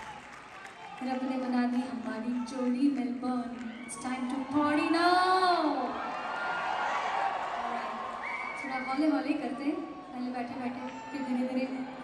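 A woman sings through loudspeakers in a large echoing arena.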